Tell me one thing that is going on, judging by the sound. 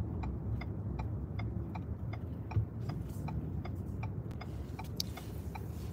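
A car's engine hums low and steady from inside the cabin.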